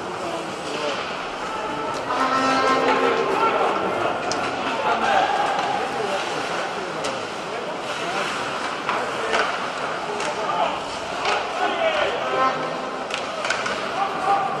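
Ice skates scrape and carve across the ice in a large echoing arena.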